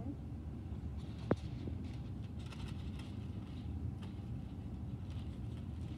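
Foil crinkles and rustles close by.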